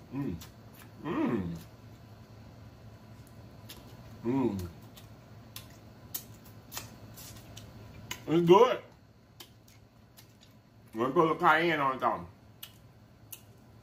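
A man chews food with soft wet crunching.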